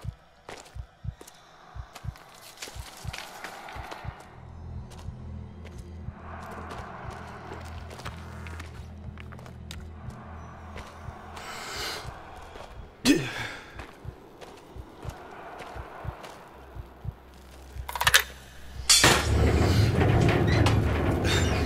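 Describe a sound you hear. Footsteps crunch through dry grass and debris.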